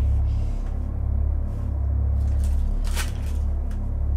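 A hammer taps against objects on a bed.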